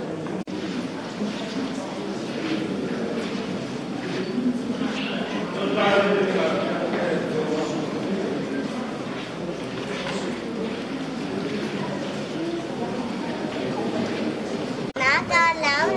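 A crowd murmurs and talks in a large echoing hall.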